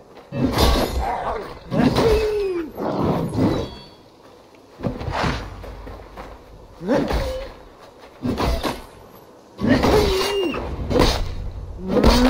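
Blades slash and thud in a fight.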